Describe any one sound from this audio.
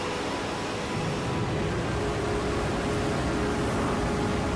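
A spacecraft's engines start up and roar with a low, steady rumble.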